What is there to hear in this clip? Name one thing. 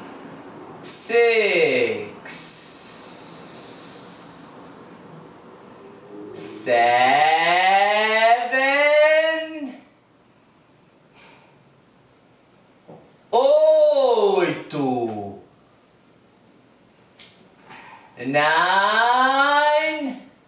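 A man groans loudly with strain, close by.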